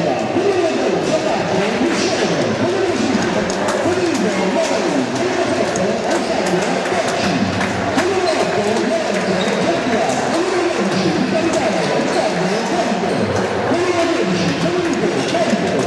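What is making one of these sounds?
Hands slap together in quick high fives.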